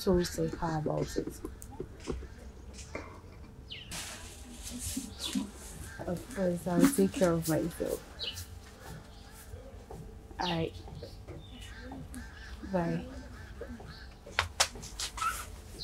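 A young woman talks cheerfully into a phone close by.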